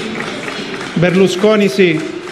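A man speaks out loud in a large echoing hall.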